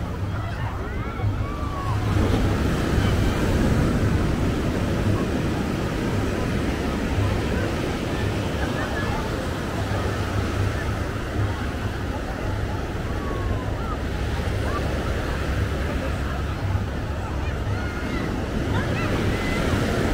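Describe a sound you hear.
Wind blows hard into a microphone.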